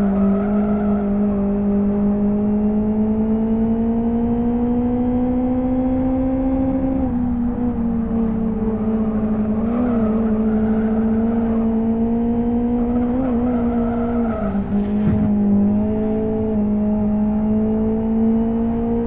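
A car engine drones steadily, rising in pitch and dropping with each gear change.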